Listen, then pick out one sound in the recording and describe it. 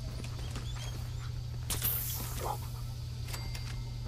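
A dog pants.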